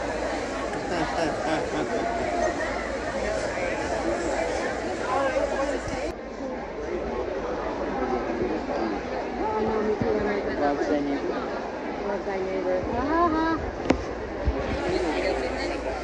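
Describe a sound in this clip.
A crowd of people chatters all around in a large echoing hall.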